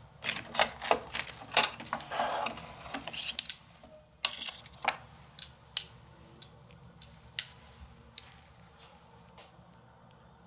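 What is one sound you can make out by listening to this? Small tools click and tap close by.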